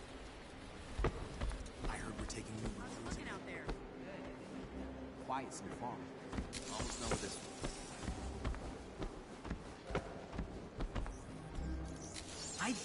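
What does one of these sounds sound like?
Heavy footsteps thud quickly on a hard floor.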